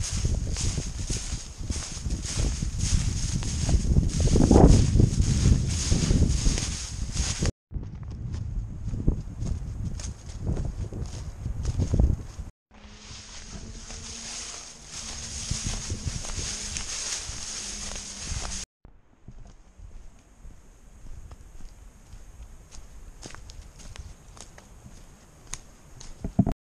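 Footsteps crunch on dry leaves and stones along a trail.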